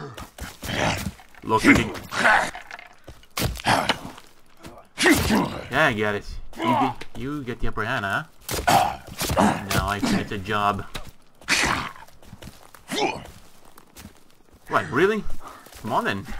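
An axe strikes flesh with heavy thuds.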